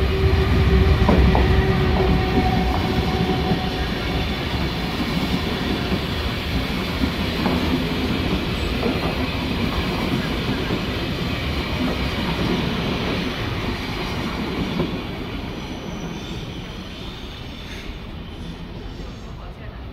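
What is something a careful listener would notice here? A passenger train rumbles past close by, wheels clattering over the rails, then fades into the distance.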